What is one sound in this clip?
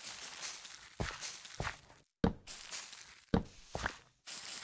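Blocks thud as they are broken and placed.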